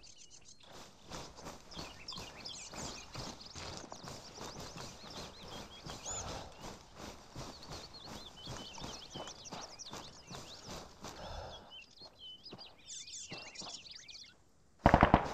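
Footsteps rustle steadily through tall grass.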